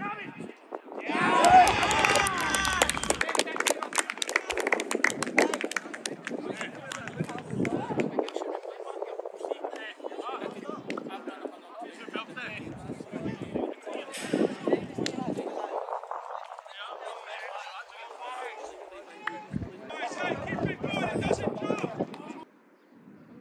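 Men shout and call out across an open football pitch outdoors.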